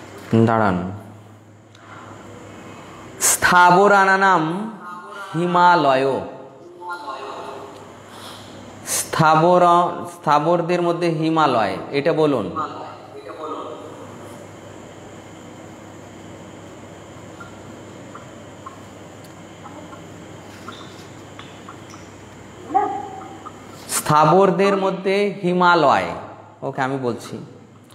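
A man sings a slow chant close to a microphone.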